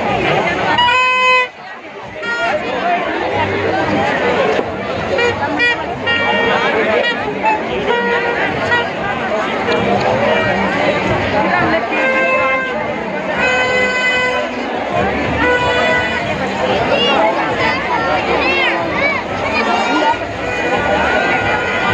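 A large crowd chatters loudly outdoors.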